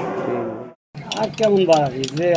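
A spoon stirs and clinks against a glass.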